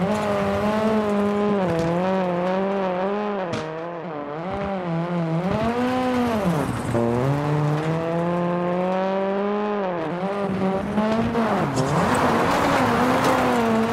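A rally car engine revs hard, rising and falling as the gears shift.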